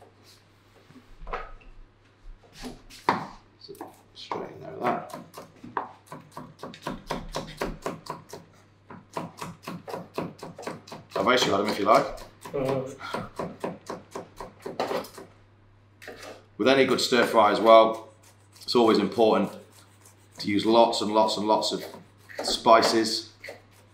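A knife chops quickly on a wooden board.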